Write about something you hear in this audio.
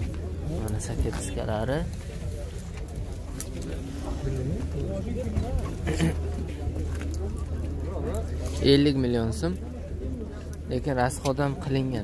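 Men talk nearby with animation.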